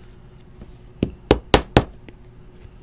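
Trading cards click and rustle as they are handled.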